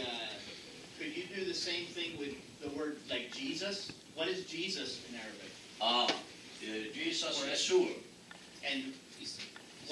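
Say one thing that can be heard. An elderly man speaks calmly and clearly.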